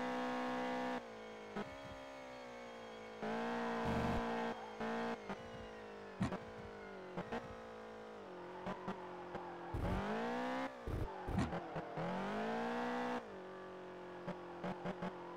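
A car engine drops in pitch and revs up and down through gear changes.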